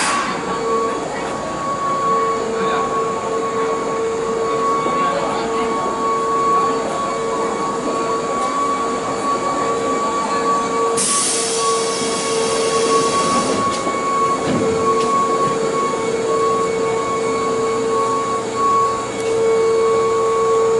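A train's electric motors hum steadily in an echoing underground station.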